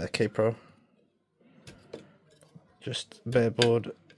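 A plastic board clicks as it is pressed into a connector.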